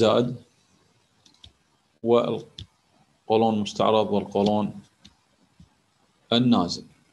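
A man speaks calmly through an online call microphone, in short phrases with pauses.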